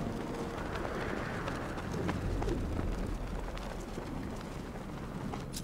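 Wind rushes steadily past.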